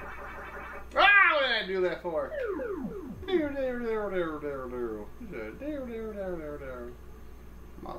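An arcade game plays a falling, warbling tune.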